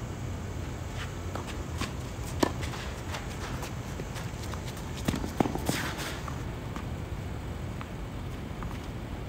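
Tennis shoes squeak and scuff on the court.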